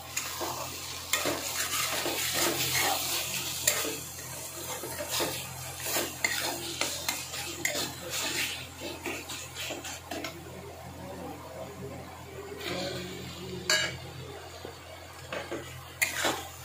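A spatula scrapes and clanks against a metal pan.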